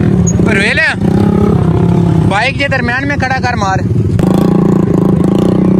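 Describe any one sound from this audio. A motorcycle engine idles and putters close by.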